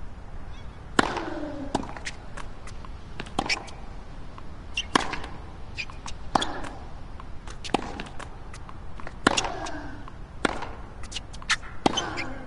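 A tennis ball is struck back and forth with sharp thwacks.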